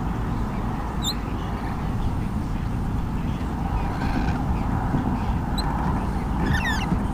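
A young bird chirps high and briefly a few times.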